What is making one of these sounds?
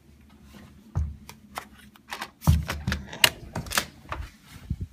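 A metal door lever handle clicks.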